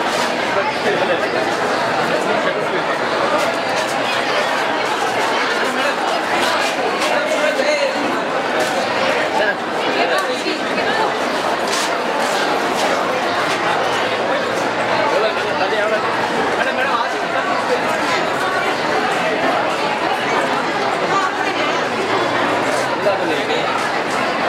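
A crowd of men and women chatter all around, close by.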